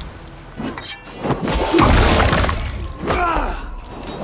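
A body falls with a heavy thud during a scuffle.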